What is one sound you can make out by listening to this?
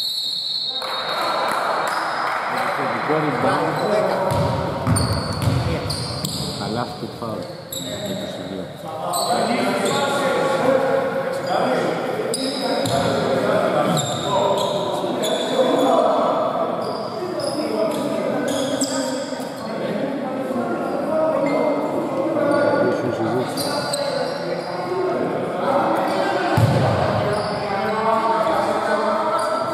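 Men talk and call out across a large echoing gym.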